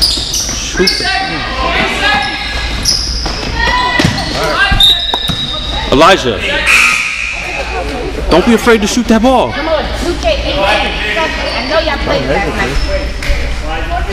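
Children and adults shout and cheer from the sidelines.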